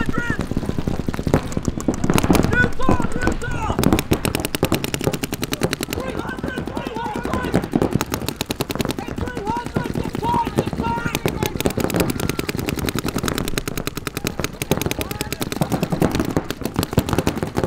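Paintball markers fire in rapid bursts of sharp pops.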